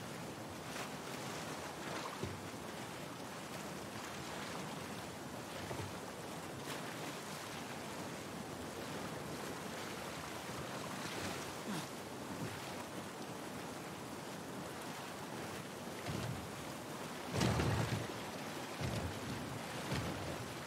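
Rushing water churns and splashes steadily.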